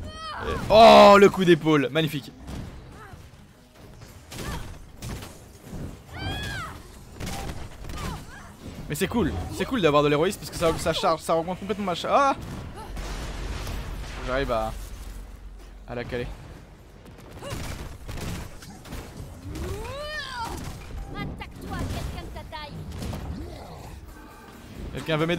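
Blasts and impacts crash from a video game.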